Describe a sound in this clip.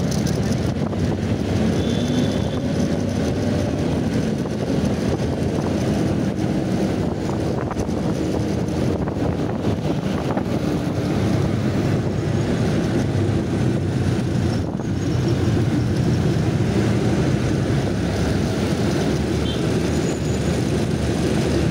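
Traffic rumbles all around on a busy road.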